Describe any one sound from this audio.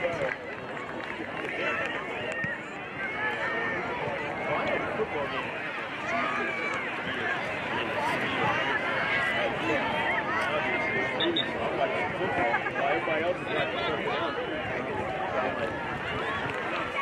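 A crowd of children and adults chatters and calls out nearby outdoors.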